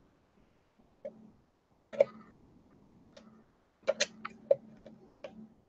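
A small metal tool clicks and taps lightly against a metal cutter.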